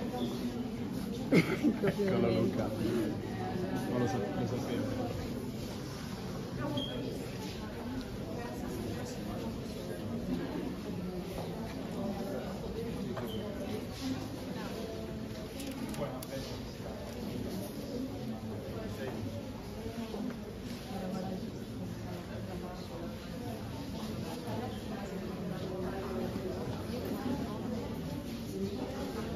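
A crowd of adults murmurs and chats indoors.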